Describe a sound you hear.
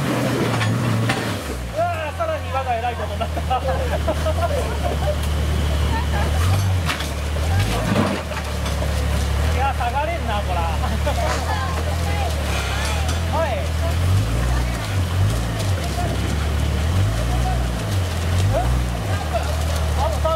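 Rocks crunch and knock under the vehicle's tyres.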